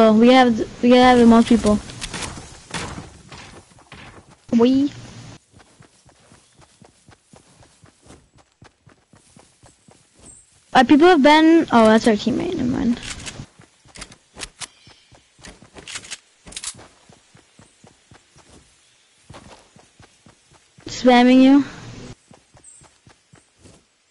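Footsteps patter quickly on grass and dirt.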